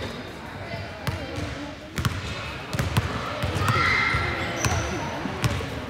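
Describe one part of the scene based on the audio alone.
A basketball bounces on a hard floor as a player dribbles.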